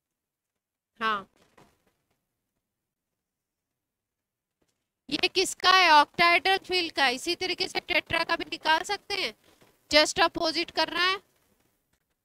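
A woman speaks calmly into a headset microphone, with short pauses.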